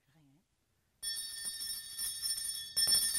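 A small hand bell rings loudly.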